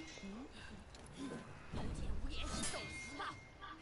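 Metal blades clash with sharp ringing hits.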